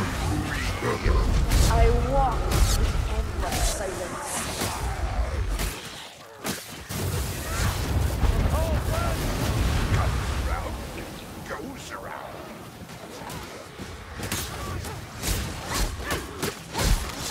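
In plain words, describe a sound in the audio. Blades slash and clang against enemies in quick blows.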